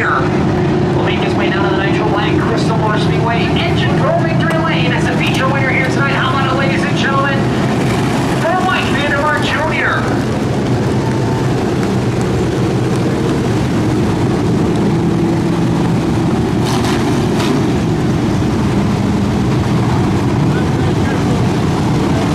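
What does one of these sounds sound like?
A race car engine roars steadily.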